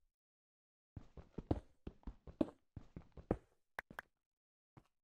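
A pickaxe taps and cracks stone blocks.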